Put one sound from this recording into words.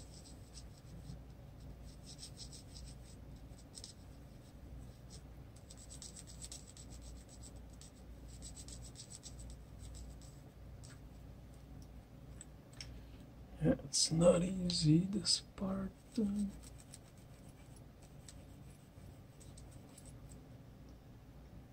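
A coloured pencil scratches softly across paper in short strokes.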